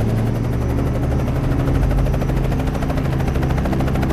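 A helicopter engine whines loudly.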